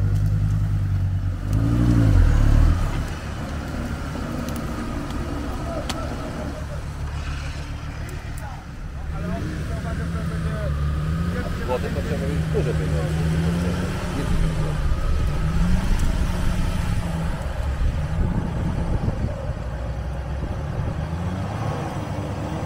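An off-road vehicle's engine rumbles and revs hard.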